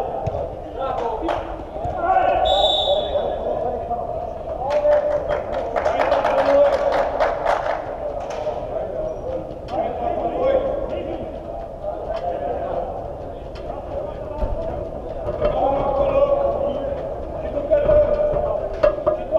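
A football is kicked on artificial turf with sharp thuds in an echoing dome.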